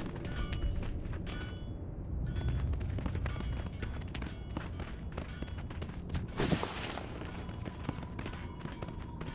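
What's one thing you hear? Footsteps patter steadily on hard ground.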